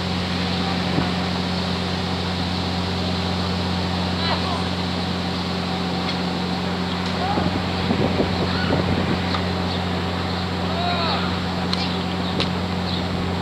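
A tennis ball is struck by a racket far off.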